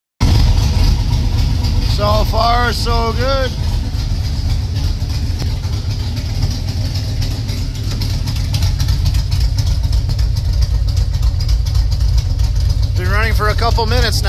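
A car engine idles with a steady low rumble, heard from inside the car.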